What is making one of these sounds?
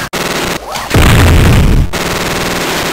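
A loud low explosion booms in the game.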